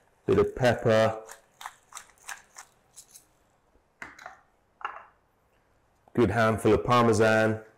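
A pepper mill grinds with short crunching bursts.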